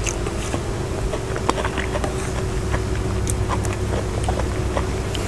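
A wooden spoon scrapes and clicks against a wooden bowl.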